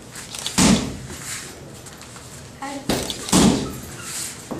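A kick thuds hard against a padded shield.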